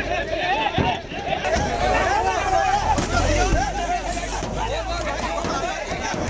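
A crowd of men shouts and clamours outdoors.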